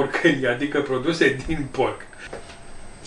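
A middle-aged man talks calmly and cheerfully, close by.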